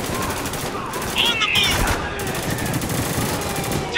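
Gunshots ring out nearby.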